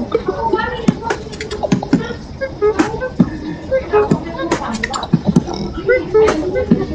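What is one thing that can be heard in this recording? A young man beatboxes close to a microphone, with quick sharp clicks and hummed tones.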